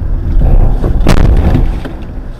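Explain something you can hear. A car crashes hard into a van with a loud bang.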